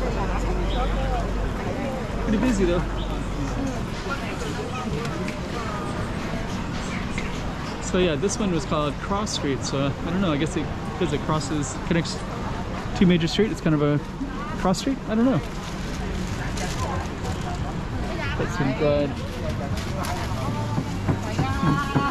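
A crowd of people chatters all around in a busy outdoor street.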